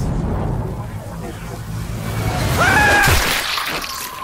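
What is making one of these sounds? A spear whooshes through the air.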